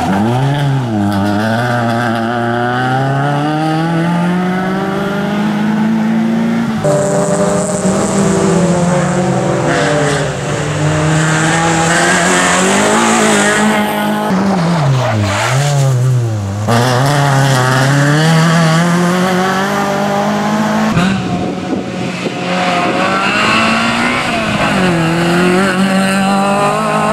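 A small car engine revs hard and rises and falls in pitch as the car races past.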